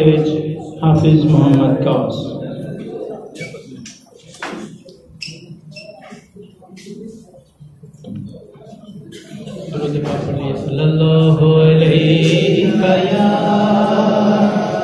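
A young man recites loudly into a microphone, heard through a loudspeaker in an echoing hall.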